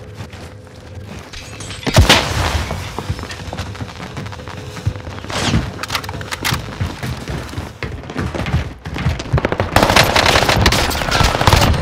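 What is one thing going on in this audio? Footsteps clatter quickly across a sheet-metal roof.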